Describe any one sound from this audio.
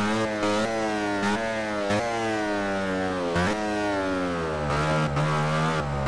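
A motorcycle engine drops in pitch as it brakes and shifts down for a corner.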